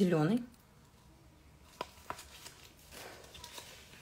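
Thin adhesive tape peels off a sheet with a faint crackle.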